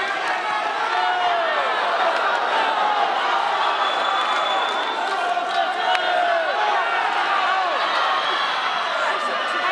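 A large crowd cheers and shouts throughout in an echoing hall.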